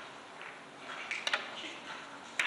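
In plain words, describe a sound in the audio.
A cue tip strikes a billiard ball.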